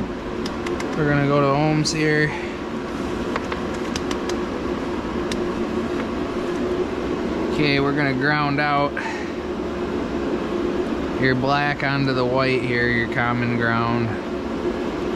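A man talks calmly over a phone's speaker.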